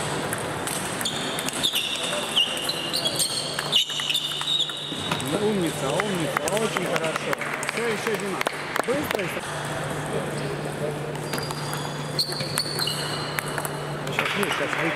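Sneakers squeak on a hard floor as players shift.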